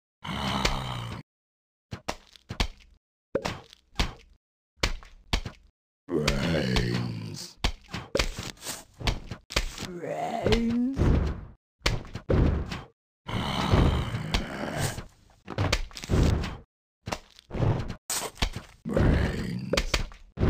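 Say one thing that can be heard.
Cartoon plants fire with soft popping shots.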